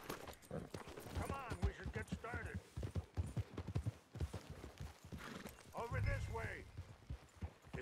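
Horse hooves thud on a dirt trail.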